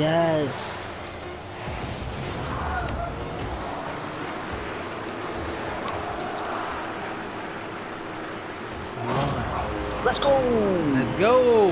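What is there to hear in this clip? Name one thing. A racing car engine roars and boosts.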